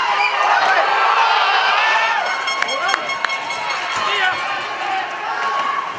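A crowd of spectators cheers and shouts loudly in an echoing rink.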